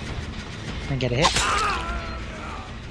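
A heavy weapon strikes with a sharp, wet thud.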